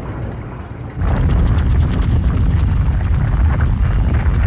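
Heavy machinery rumbles loudly.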